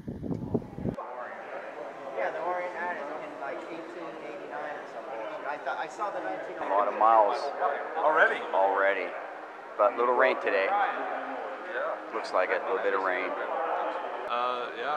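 A crowd of adults chatters in an echoing hall.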